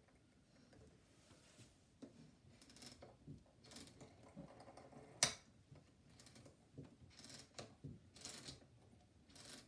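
Hands click and knock on the mechanism of a cylinder phonograph.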